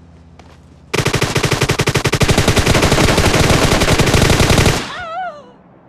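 A rifle fires in rapid automatic bursts.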